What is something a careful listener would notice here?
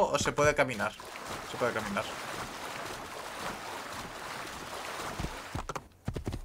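Water splashes steadily as a horse runs through it.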